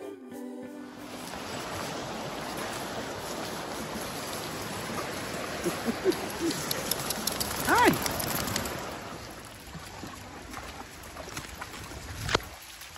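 A stream of water rushes and gurgles steadily.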